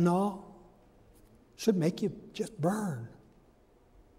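An elderly man speaks calmly in short phrases, heard through a microphone in an echoing hall.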